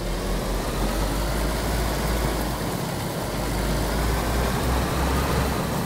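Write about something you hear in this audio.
Tyres rumble over bumpy grass.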